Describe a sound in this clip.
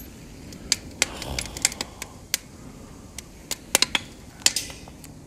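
A fire crackles and pops with sharp snaps.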